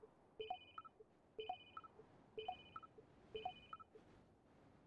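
Electronic beeps chime in a quick repeating pattern.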